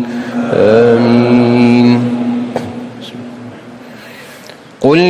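A man chants slowly and melodically through loudspeakers in a large echoing hall.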